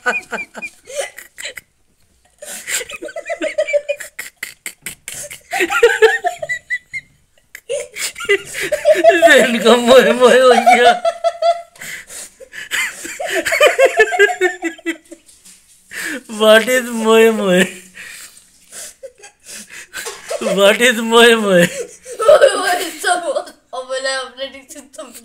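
A young boy giggles and laughs close by, muffled behind his hands.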